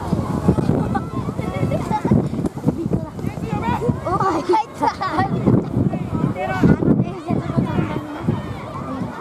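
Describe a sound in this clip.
Children shout and call out across an open field outdoors.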